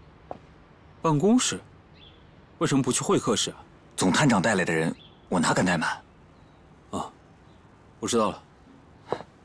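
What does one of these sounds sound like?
A second young man answers tensely up close.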